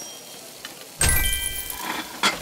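A bright game chime rings as a cash reward pops up.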